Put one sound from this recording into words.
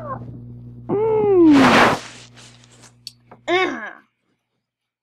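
A boy shouts excitedly close to a microphone.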